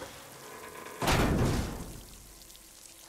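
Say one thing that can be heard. A heavy metal door grinds open.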